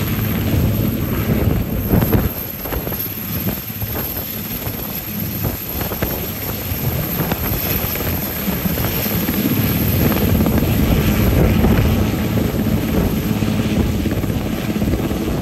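A helicopter's rotor thumps loudly close by as it lifts off.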